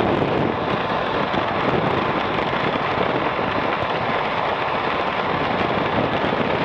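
Wind roars loudly against a microphone on a moving motorcycle.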